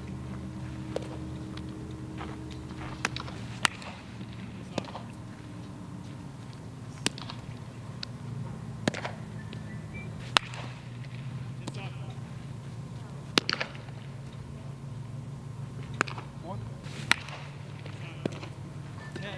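A baseball smacks into a leather glove again and again.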